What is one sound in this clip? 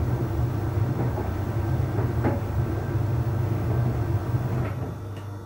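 Clothes thump softly inside a tumbling dryer drum.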